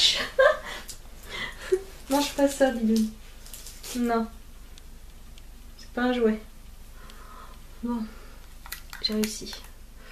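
A young woman talks animatedly and close up, in short bursts.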